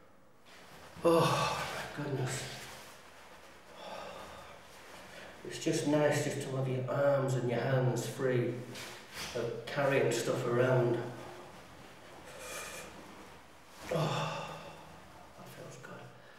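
A man speaks with animation close by.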